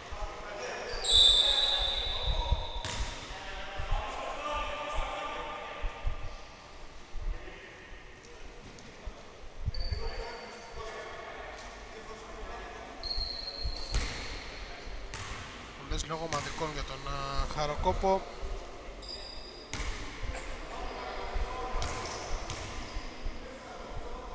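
Men's voices call out across an echoing hall.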